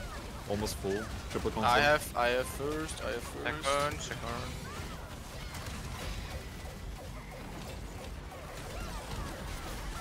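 Magic spells crackle and whoosh in a fierce battle.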